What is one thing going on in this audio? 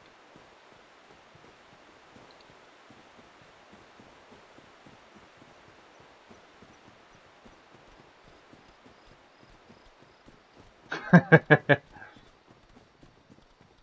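Footsteps thud quickly over the ground.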